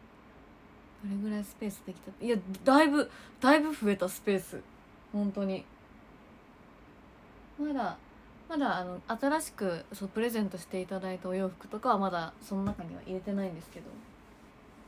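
A young woman speaks casually, close to the microphone.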